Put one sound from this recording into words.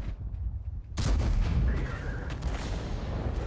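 A shell explodes with a heavy blast and rumble.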